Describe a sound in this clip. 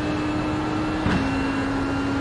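A racing car shifts up a gear with a sharp knock and a brief dip in engine pitch.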